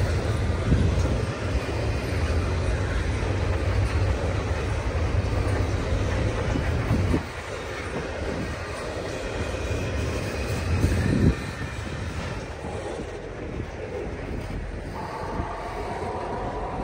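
A long freight train rumbles and clatters steadily along the tracks.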